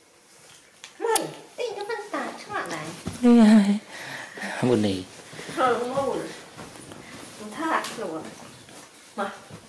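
A young woman talks in a gentle, playful voice close by.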